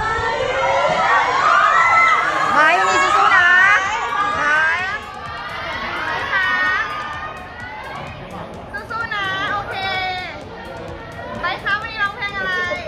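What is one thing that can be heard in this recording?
A crowd of young women chatters and cheers.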